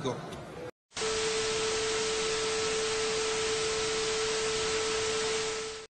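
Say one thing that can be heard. A steady beep tone sounds.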